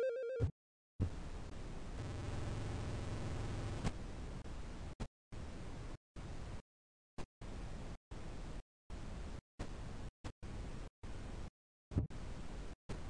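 Harsh electronic hissing noise sounds in short bursts with gaps.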